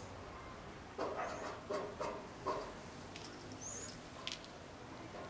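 A brush swishes through hair.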